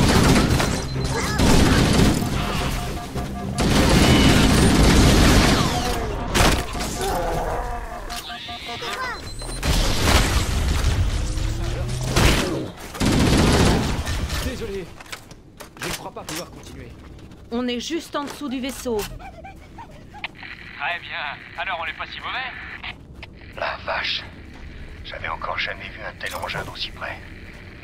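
Energy bursts crackle and whoosh.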